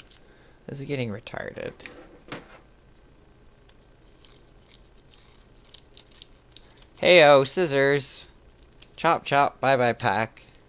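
A foil card wrapper crinkles in a hand.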